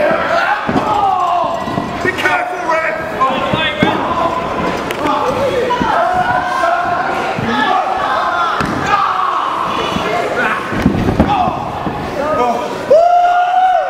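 A crowd of spectators cheers and shouts in an echoing hall.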